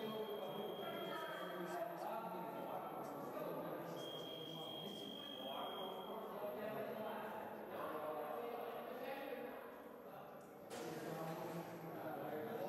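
Men and women chatter indistinctly in a large echoing hall.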